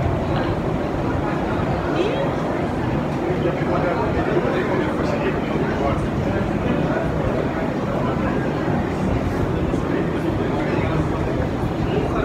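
An escalator rumbles steadily.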